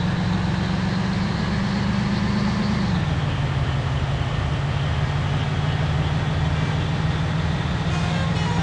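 A bus engine drones steadily at speed, dropping in pitch as it shifts gear.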